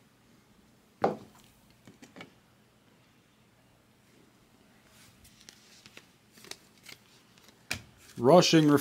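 Trading cards rustle and click softly as they are handled.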